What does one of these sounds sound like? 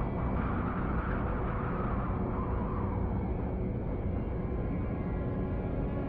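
A sandstorm wind roars steadily.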